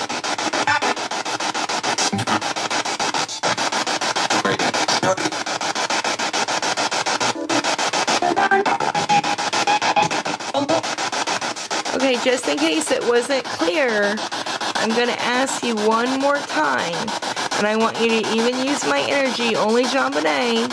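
A radio hisses and crackles with static.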